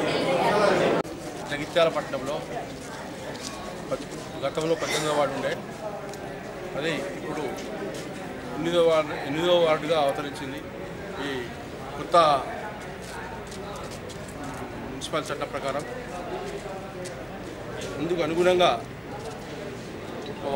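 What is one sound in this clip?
A middle-aged man speaks firmly and loudly, close by.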